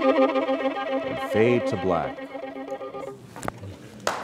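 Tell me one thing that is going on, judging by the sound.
A violin plays a melody in a large hall and ends.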